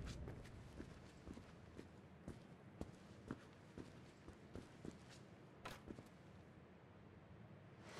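Footsteps crunch softly on dry leaves.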